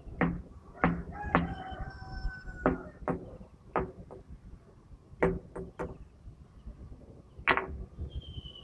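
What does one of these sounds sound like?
A man knocks sharply on rock.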